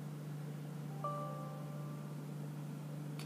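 A computer gives a short alert chime.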